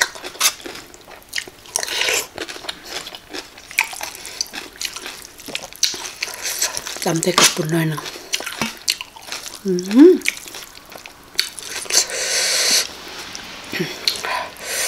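A young woman chews food and smacks her lips close to a microphone.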